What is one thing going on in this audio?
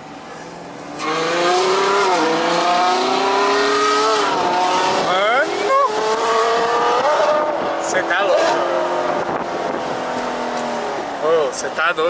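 A sports car engine roars and revs up as the car accelerates.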